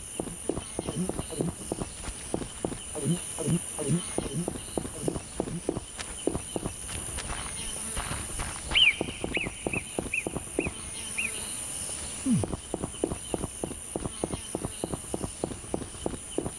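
Footsteps run quickly on a stone path.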